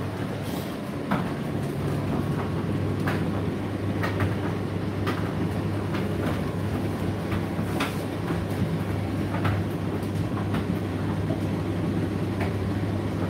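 A tumble dryer hums and rumbles steadily.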